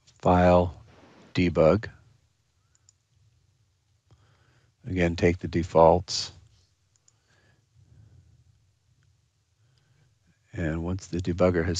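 A middle-aged man speaks calmly through a microphone in short bursts.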